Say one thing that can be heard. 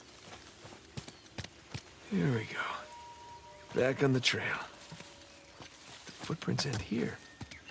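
Footsteps fall on a dirt path.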